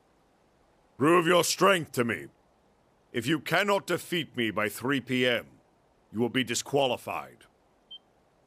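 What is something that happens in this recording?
A man speaks firmly and sternly.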